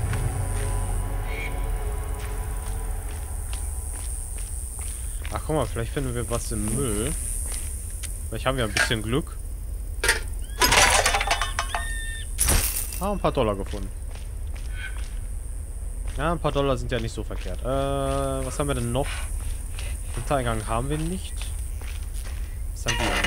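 Footsteps crunch steadily on dry ground.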